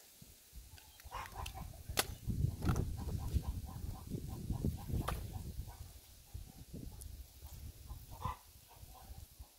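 Brush and dry vines rustle and crackle as they are dragged over the ground.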